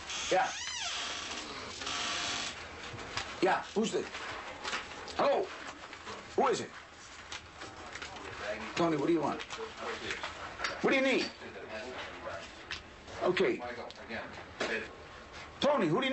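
A man talks on a phone, close by.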